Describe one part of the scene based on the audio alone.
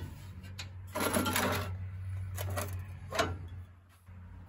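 Glass bottles and spray cans clink as they are moved on a shelf.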